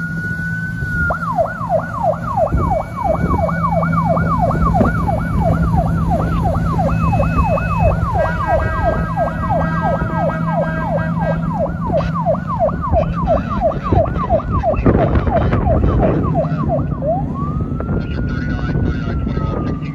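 A boat's engine rumbles steadily.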